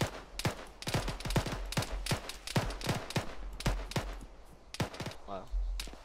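Footsteps crunch quickly through dry grass.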